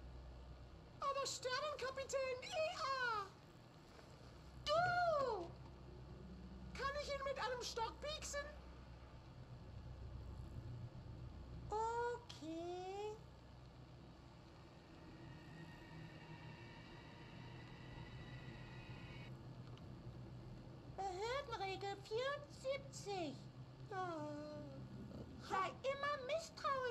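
A high-pitched cartoonish woman's voice speaks with animation through a television speaker.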